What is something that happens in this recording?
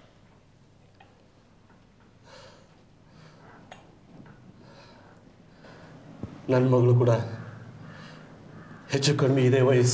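A cup clinks softly on a saucer.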